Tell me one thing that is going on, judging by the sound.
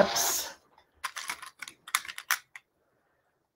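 Pins rattle in a small plastic box.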